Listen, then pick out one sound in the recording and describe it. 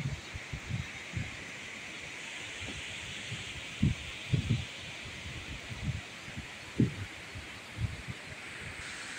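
A waterfall roars steadily in the distance.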